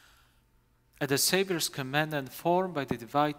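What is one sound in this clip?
A man speaks in a steady, chanting voice through a microphone in a large echoing hall.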